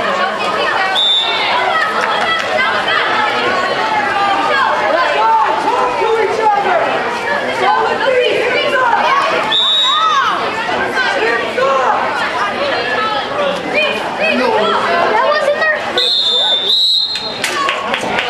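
A referee's whistle blows sharply a few times.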